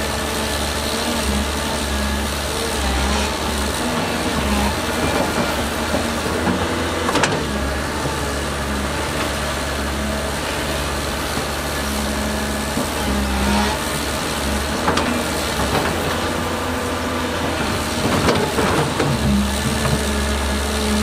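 A diesel engine of a bulldozer rumbles steadily nearby.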